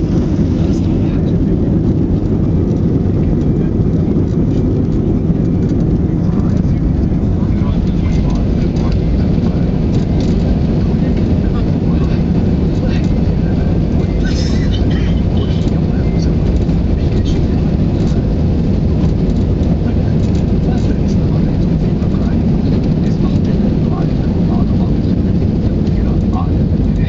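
The cabin rattles and knocks as the wheels roll over bumps.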